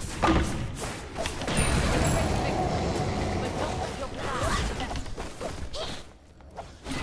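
Game spells and hits crackle and boom in quick bursts.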